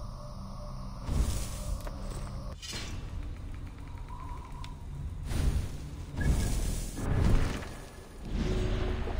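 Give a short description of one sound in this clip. Soft whooshing swells sound as menu pages switch.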